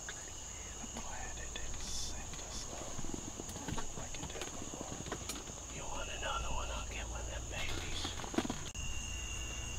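Tent fabric and clothing rustle as a man shifts about close by.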